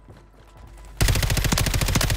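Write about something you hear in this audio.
A rifle fires rapidly in a loud burst.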